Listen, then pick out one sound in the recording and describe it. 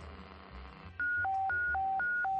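A two-tone electronic alarm sounds loudly, alternating high and low.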